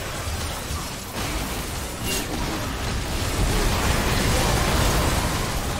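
Magic blasts crackle and burst in a busy fight.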